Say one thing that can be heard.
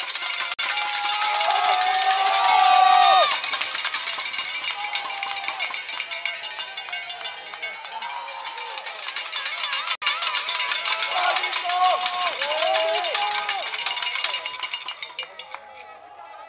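Spectators shout and cheer loudly nearby.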